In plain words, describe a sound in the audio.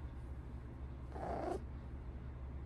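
A cat gives a short meow close by.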